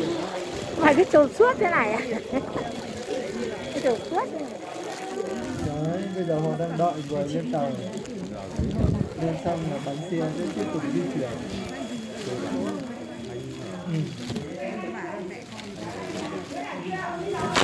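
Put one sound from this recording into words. A crowd of men and women chatter loudly close by.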